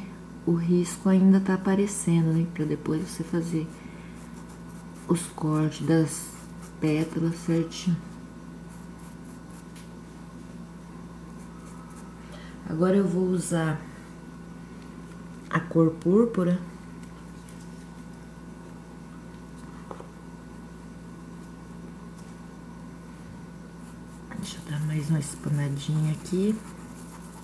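A paintbrush brushes softly against canvas.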